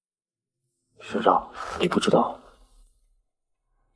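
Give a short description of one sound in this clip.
A young man speaks in surprise close by.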